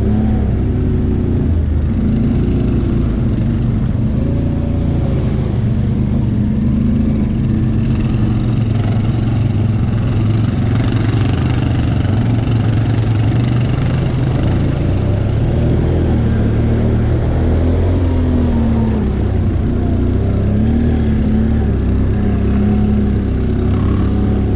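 An all-terrain vehicle engine rumbles steadily up close, its pitch rising and falling with the throttle.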